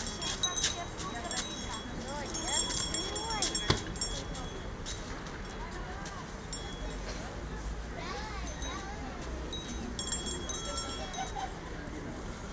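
Small bells jingle and tinkle brightly.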